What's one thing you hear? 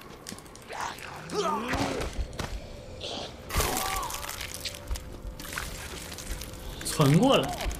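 A young man cries out in pain.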